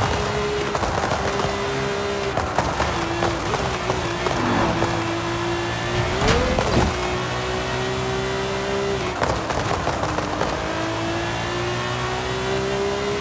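A sports car engine roars at high speed, dropping in pitch on gear changes and braking, then revving back up.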